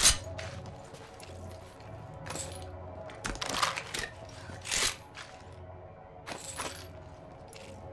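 Game items clatter as they are picked up.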